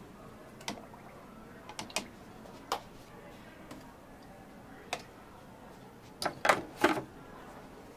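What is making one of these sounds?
Plastic cups and jugs knock and clatter on a hard counter.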